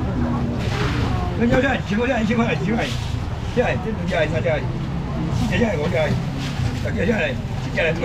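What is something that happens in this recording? A middle-aged man talks with animation nearby.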